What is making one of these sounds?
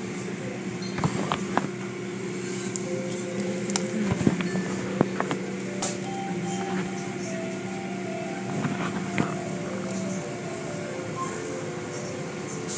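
Large brushes thump and slap against a vehicle.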